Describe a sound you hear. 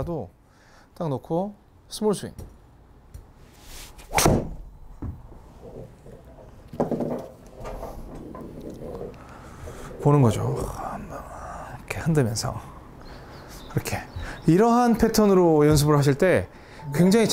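A man talks with animation, close by.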